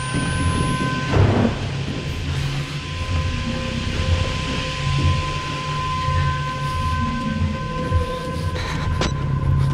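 Steam hisses from a pipe.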